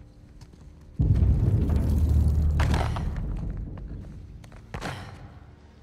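Debris collapses with a deep, loud rumble that slowly fades.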